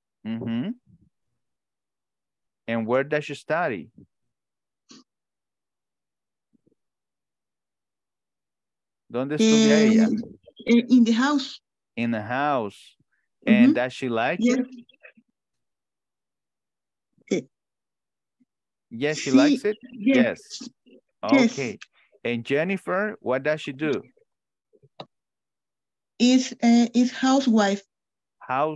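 A man speaks calmly through an online call, pausing often.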